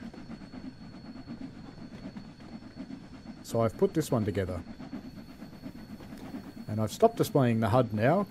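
A steam locomotive chuffs steadily along the track.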